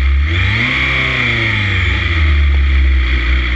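Another motorcycle roars past close by.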